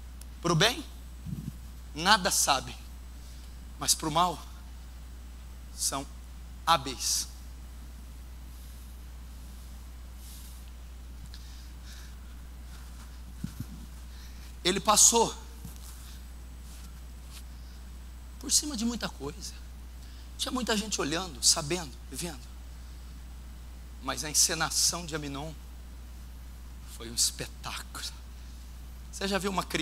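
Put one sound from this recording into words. A man preaches through a microphone in short bursts, with pauses, in a reverberant hall.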